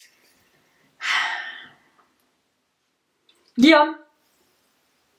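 A young woman speaks in short bursts, close by, with long pauses.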